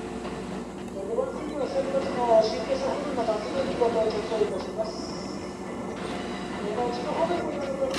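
Train wheels squeal and screech on curved rails.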